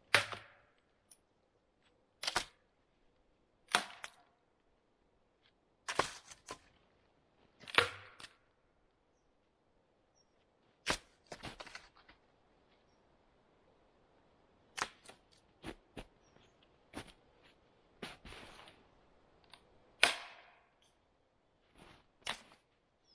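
A man strikes a tree trunk with sharp, spaced knocks.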